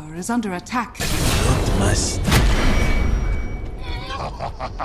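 Magic blasts roar and crackle in a fight.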